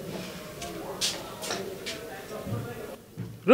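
Dishes clink on a table.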